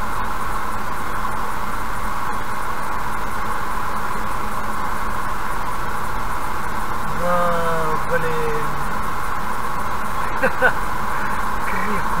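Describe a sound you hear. Tyres roar steadily on a highway from inside a moving car.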